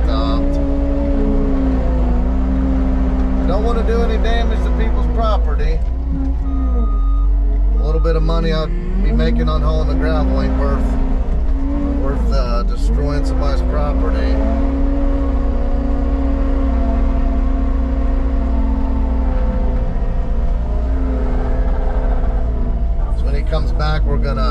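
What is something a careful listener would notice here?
A diesel engine rumbles loudly and steadily, rising and falling in pitch as it works.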